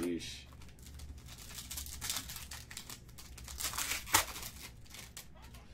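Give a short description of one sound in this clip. A plastic card sleeve rustles and crinkles.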